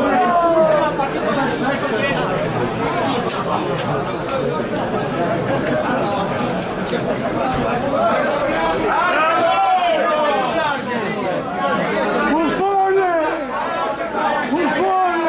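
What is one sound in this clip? Several young men shout and call to each other outdoors.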